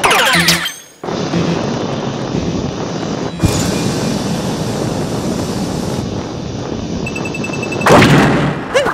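A rocket whooshes upward with a steady rushing roar.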